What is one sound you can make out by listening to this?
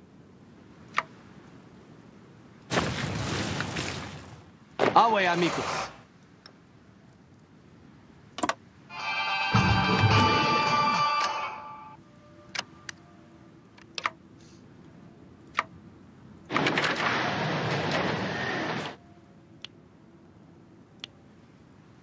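Short interface clicks sound now and then.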